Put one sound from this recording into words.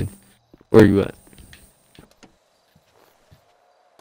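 A car door opens and shuts.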